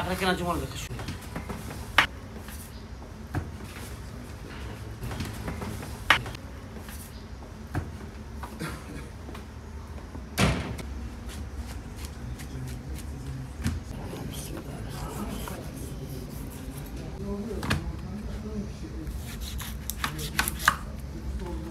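A knife chops through meat and bone with sharp knocks on a wooden board.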